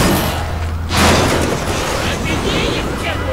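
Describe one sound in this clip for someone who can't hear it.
A loud blast booms and crackles.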